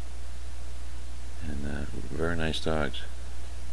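A dog sniffs at the ground close by.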